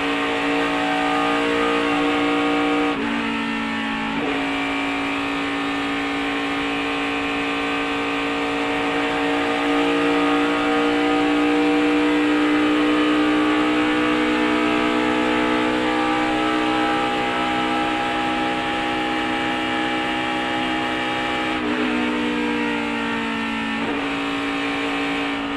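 Wind rushes past a speeding car.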